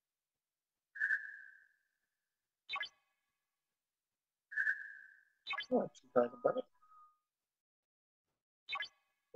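Short electronic chimes and clicks sound from a game menu.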